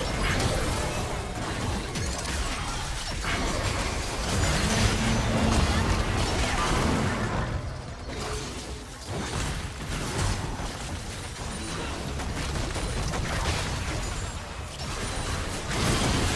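Fantasy spell effects whoosh and crackle in a busy battle.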